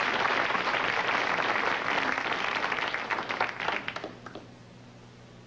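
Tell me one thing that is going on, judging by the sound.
Footsteps tap and scuff on a wooden stage floor.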